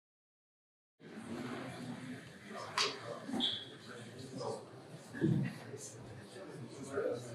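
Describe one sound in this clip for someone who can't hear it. A young man speaks calmly into a microphone in a large room.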